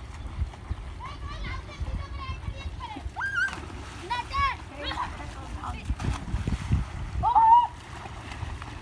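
Young boys shout excitedly at a distance.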